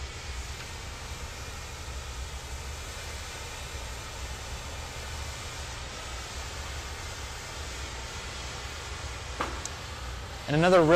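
A furnace roars with a steady low rumble.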